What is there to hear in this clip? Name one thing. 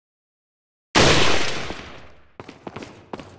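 A rifle fires once with a loud, echoing bang.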